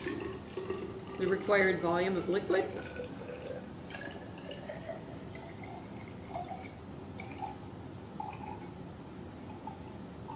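Water pours and trickles into a glass container.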